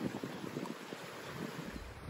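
A river rushes and splashes.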